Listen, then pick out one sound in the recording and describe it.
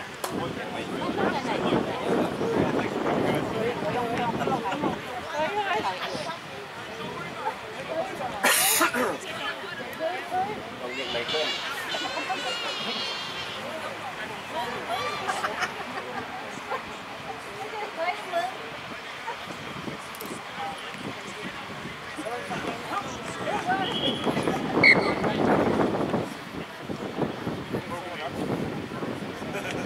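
Young men talk and call out to each other outdoors.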